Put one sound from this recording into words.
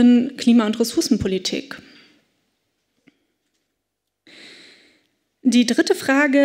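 A young woman speaks calmly into a microphone, echoing slightly in a hall.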